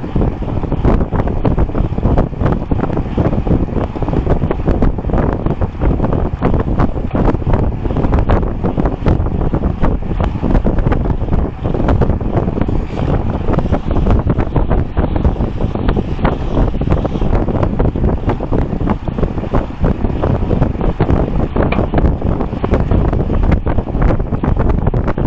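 Wind roars loudly past a moving bicycle.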